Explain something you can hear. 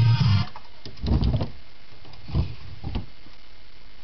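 A wooden cabinet door thumps as a hand pushes it shut.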